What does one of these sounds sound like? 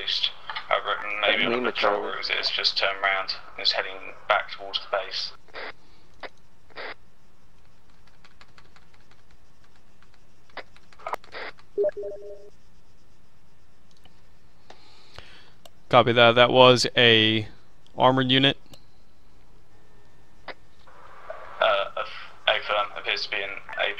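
A young man talks casually into a close headset microphone, in bursts with pauses.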